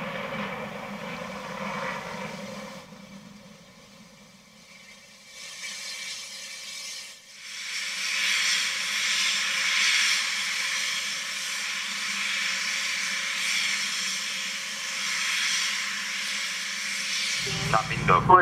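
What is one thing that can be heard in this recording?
A Delta II rocket roars as it lifts off close by.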